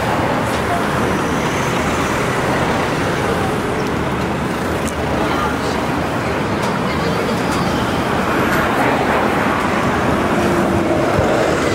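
Car engines hum as cars drive past.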